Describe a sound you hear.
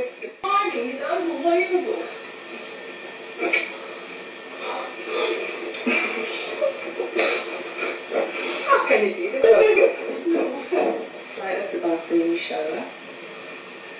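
A woman talks with animation close by.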